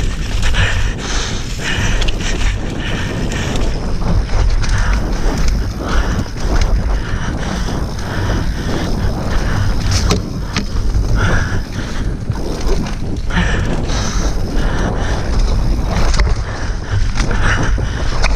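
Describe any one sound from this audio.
Wind rushes loudly past a bike rider.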